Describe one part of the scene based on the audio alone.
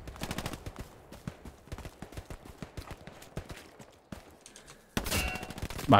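Footsteps crunch steadily over forest ground.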